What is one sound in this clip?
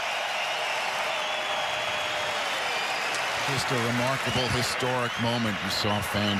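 A large crowd roars and cheers in a big stadium.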